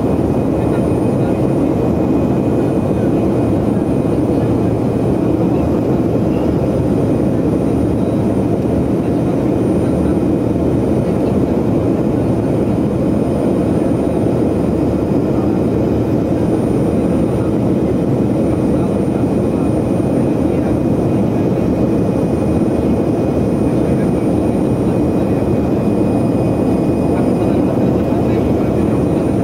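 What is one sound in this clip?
An aircraft engine drones steadily in a loud rushing roar.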